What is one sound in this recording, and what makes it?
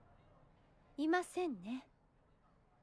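A young woman answers calmly.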